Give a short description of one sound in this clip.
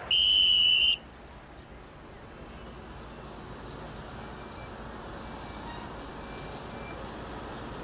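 Traffic hums steadily on a street.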